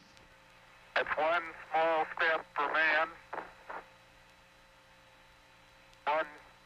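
A man speaks over a crackly radio link, in short bursts.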